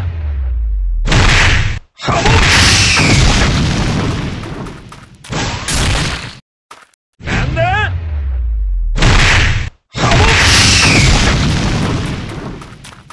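Punches and hits thud and crackle in quick bursts.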